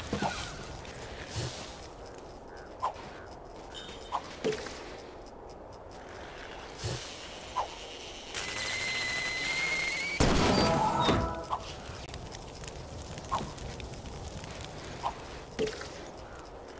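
Short bright chimes ring out now and then in a video game.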